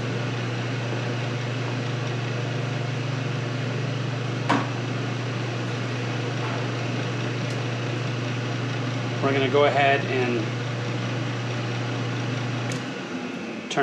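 A heater's blower hums steadily, then shuts off.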